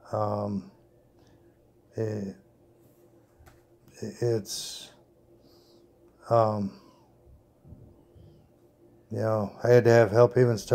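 A man speaks calmly in short phrases close to the microphone, with pauses between them.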